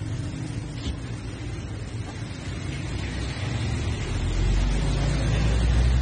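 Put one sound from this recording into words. A freezer hums steadily.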